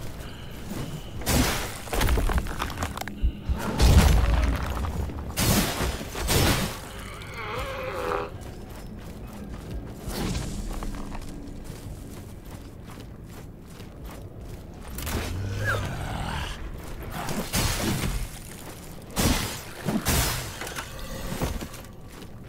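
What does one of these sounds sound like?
Footsteps thud slowly on the ground.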